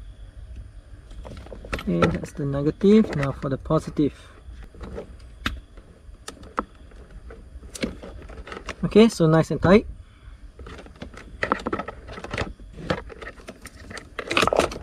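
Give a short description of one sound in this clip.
Plastic wire connectors click and rattle as they are handled close by.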